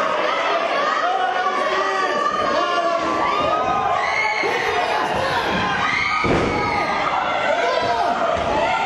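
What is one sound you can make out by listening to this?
A crowd cheers and shouts loudly throughout.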